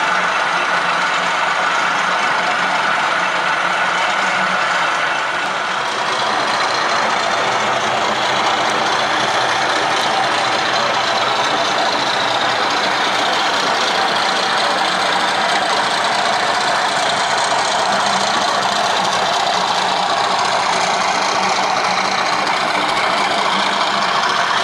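A model train's motor hums and whirs as it rolls along the track.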